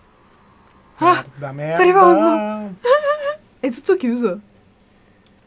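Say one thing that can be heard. A young woman exclaims with animation into a microphone.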